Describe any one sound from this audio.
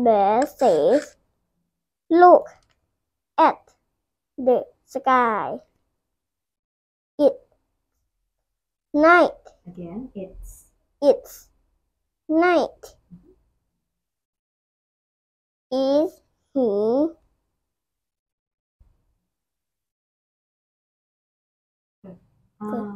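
A young boy reads aloud slowly into a close microphone, in short bursts with pauses.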